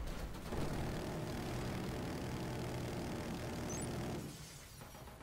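Gunfire rattles rapidly in quick bursts.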